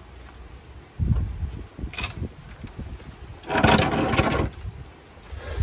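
A heavy wooden frame tips over and thumps down onto concrete.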